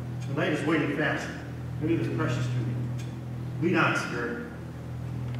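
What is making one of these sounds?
A man speaks dramatically on a stage, heard from the audience in a large hall.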